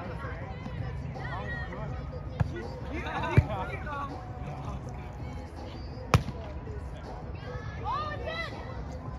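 Young people shout and call out to each other during a game outdoors.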